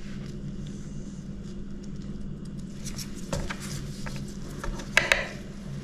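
Small pieces tap softly onto a plastic board.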